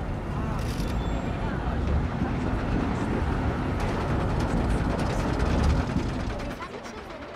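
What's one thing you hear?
A roller coaster train rumbles loudly along its track.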